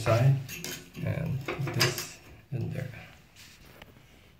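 A metal drain cover scrapes and clinks as it is lifted out.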